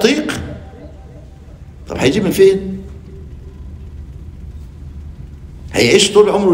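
An elderly man speaks with animation through a microphone, in short bursts with pauses.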